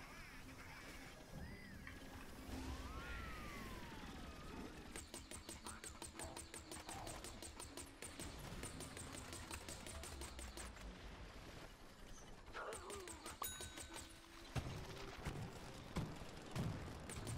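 A video game weapon fires rapid needle shots.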